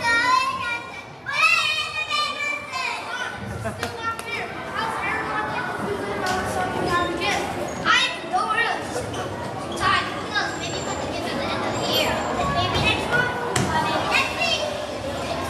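Many children chatter and shout in a large echoing hall.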